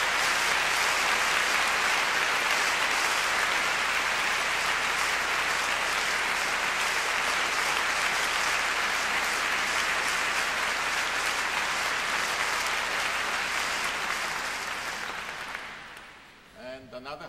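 An audience applauds loudly in a large hall, then the applause dies away.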